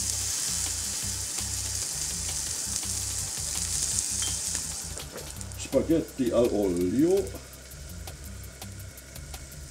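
Meat sizzles loudly in a hot frying pan.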